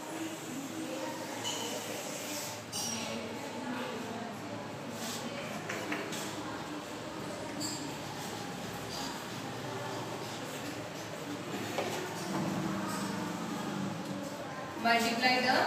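A woman speaks calmly and clearly nearby.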